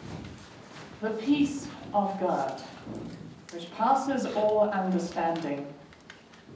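A middle-aged woman speaks calmly and expressively.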